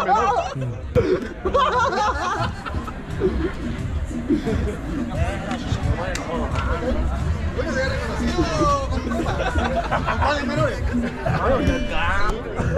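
People chatter in the background outdoors.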